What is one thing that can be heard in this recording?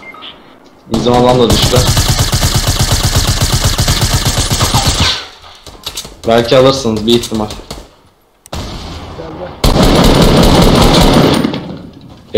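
A rifle fires rapidly in long bursts.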